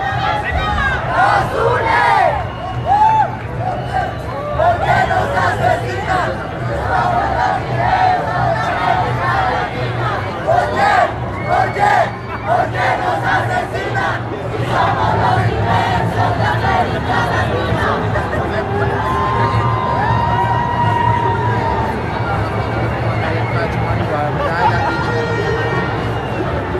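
A crowd of marchers chatters and calls out outdoors.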